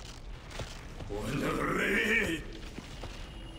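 A monstrous creature lets out a deep, snarling roar.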